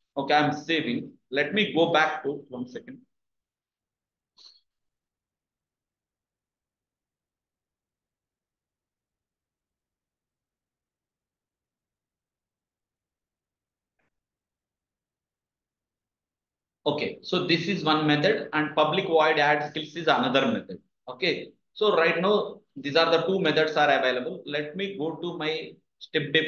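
A young man speaks calmly and explains into a close microphone.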